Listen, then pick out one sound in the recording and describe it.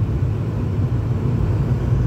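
An oncoming car passes by.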